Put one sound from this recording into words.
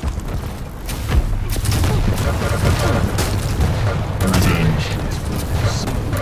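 An energy beam crackles and hums.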